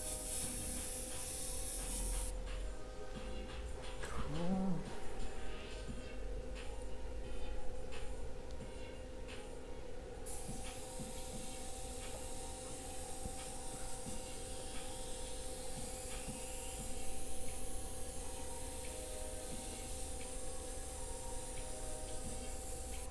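An airbrush hisses in short and long bursts.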